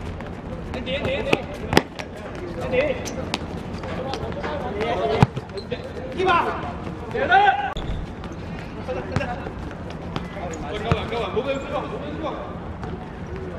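Young men shout to each other during the game.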